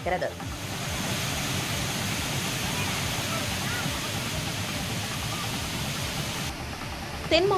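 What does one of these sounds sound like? A waterfall roars and splashes steadily.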